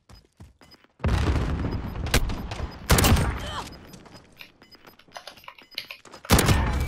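A rifle fires in loud rapid bursts.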